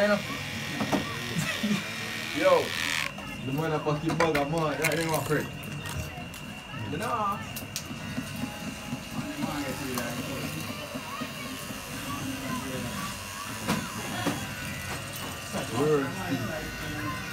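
Electric hair clippers buzz close by.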